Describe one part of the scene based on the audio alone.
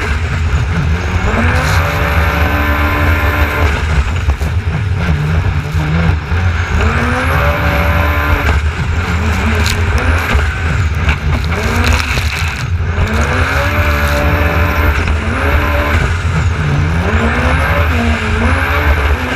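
A personal watercraft engine roars and revs up and down.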